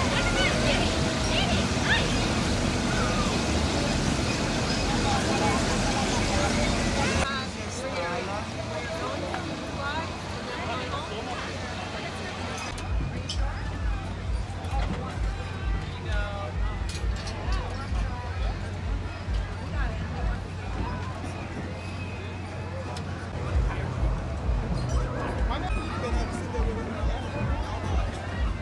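A crowd of children and adults chatter nearby outdoors.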